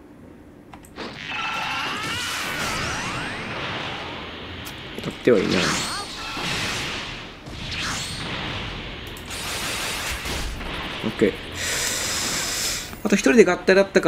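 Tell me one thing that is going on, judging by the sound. Energy blasts whoosh and crackle loudly.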